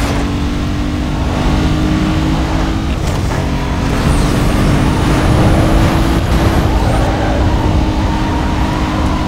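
A racing car engine roars steadily at high speed.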